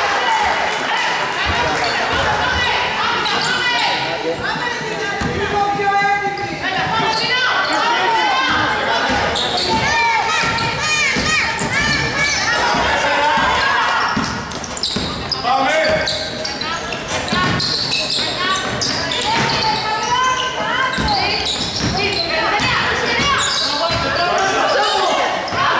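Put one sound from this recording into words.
Young women shout to one another across a large echoing hall.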